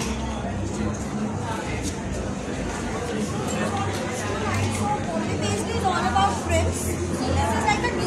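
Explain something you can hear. A crowd murmurs in a large echoing indoor space.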